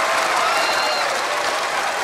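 A woman shouts excitedly.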